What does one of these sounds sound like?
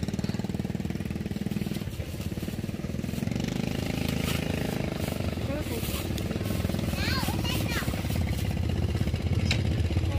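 A plastic bag rustles as greens are stuffed into it.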